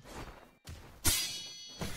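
A magical blast bursts with a bright ringing whoosh.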